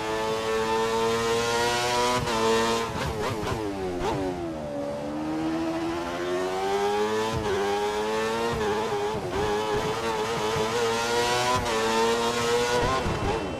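A racing car engine screams at high revs, dropping sharply as the car brakes and rising again as it accelerates.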